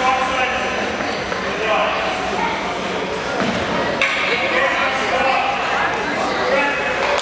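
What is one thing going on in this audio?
Young players call out to one another across the ice.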